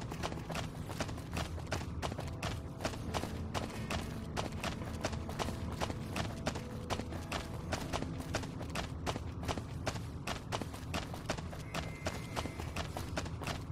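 Footsteps crunch steadily on hard ground.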